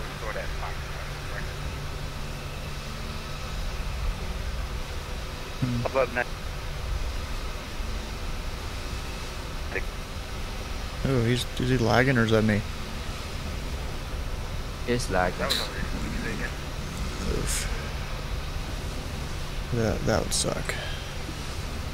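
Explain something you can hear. A young man talks casually into a close microphone, in short bursts.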